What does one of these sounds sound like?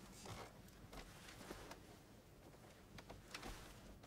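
Bedding rustles softly as a person shifts in bed.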